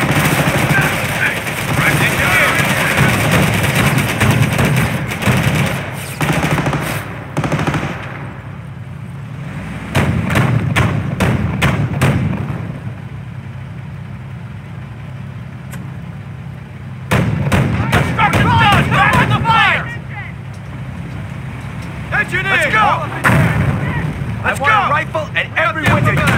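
Gunfire rattles in short, rapid bursts.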